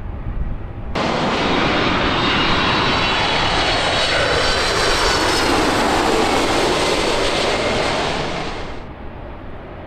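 A jet airliner roars loudly as it passes low overhead, then fades.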